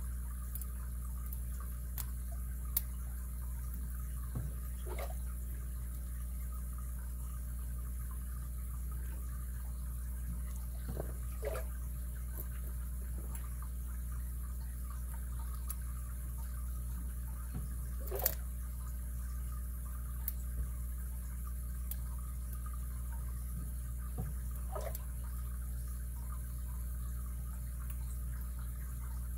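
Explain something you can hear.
Small metal tools click and scrape softly inside a padlock.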